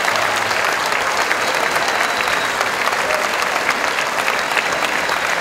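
A crowd applauds loudly and steadily outdoors.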